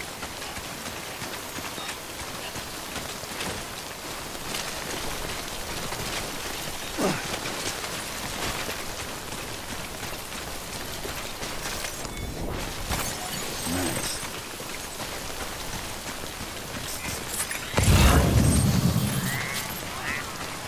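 Footsteps crunch on loose rocky ground.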